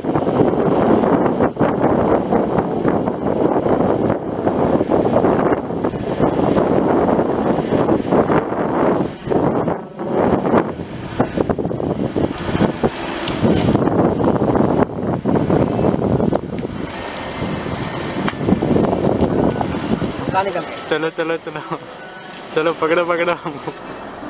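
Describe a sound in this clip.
A bicycle rolls along a paved road.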